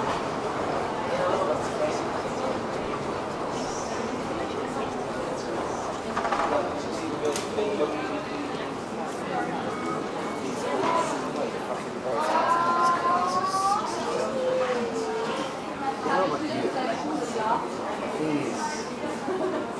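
A crowd of men and women chatter on an echoing underground platform.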